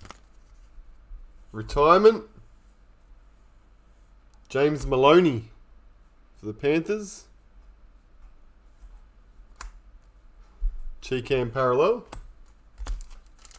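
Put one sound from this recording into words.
Trading cards slide against each other as they are flicked through.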